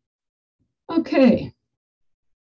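A woman speaks briefly into a microphone over an online call.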